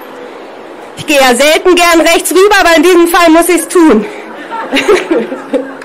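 A young woman speaks loudly through a megaphone outdoors.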